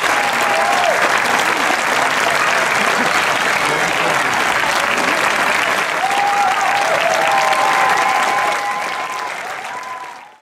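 A large audience applauds loudly outdoors and the applause fades away.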